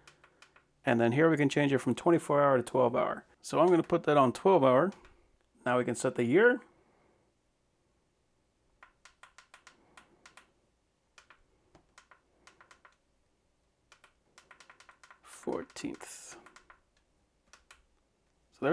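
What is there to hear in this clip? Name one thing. A finger presses small buttons on a clock, which click softly.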